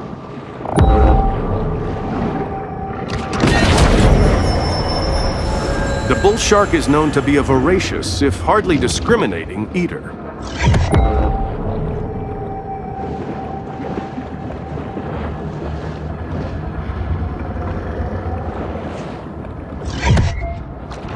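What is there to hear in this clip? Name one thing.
A low underwater rumble goes on throughout.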